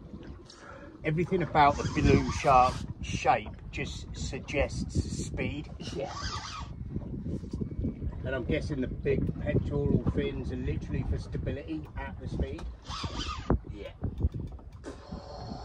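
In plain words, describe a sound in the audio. A man talks with animation, outdoors in wind.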